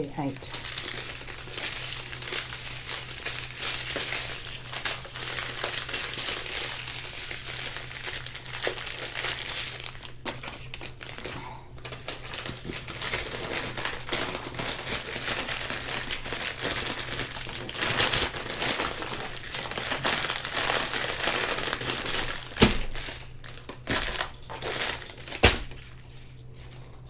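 Plastic packets crinkle and rustle as hands handle them.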